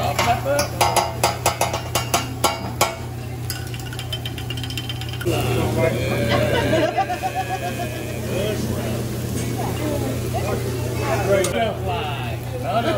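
Rice sizzles on a hot griddle.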